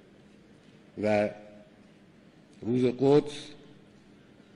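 An elderly man speaks slowly and forcefully into a microphone, with long pauses between phrases.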